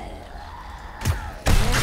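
A pistol fires loud shots.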